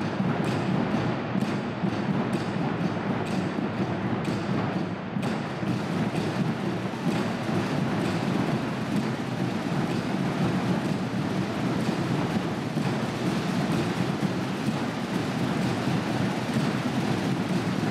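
Drums beat in a steady rhythm.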